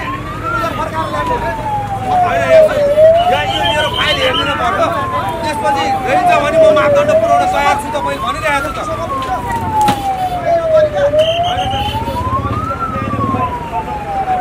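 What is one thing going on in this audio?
A man shouts loudly nearby.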